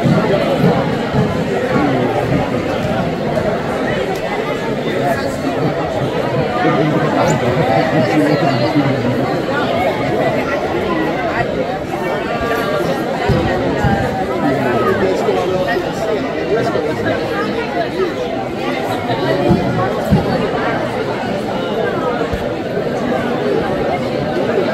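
A large crowd of children and adults chatters loudly in an echoing hall.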